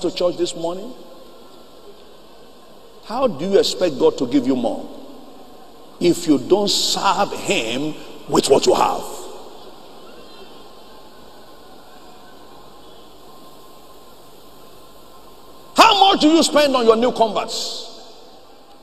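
A middle-aged man preaches with animation through a microphone, with long pauses, in an echoing hall.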